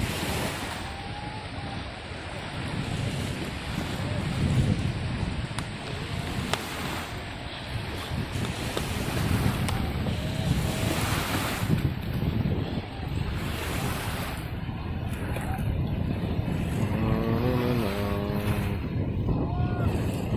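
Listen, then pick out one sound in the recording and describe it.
A man wades and splashes through shallow water.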